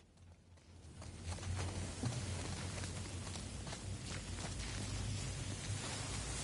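A road flare hisses steadily as it burns.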